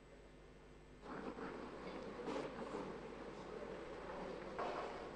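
A woman speaks calmly through a microphone in a large echoing room.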